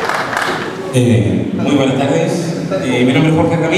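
A man speaks through a loudspeaker with a microphone, echoing in the hall.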